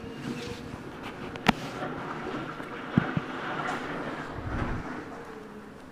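Debris crashes and clatters as an excavator tears down a building.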